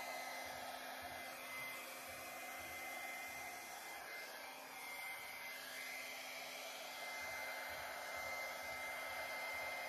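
A hair dryer blows air in a steady whoosh.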